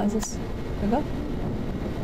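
A young woman speaks casually into a microphone, close by.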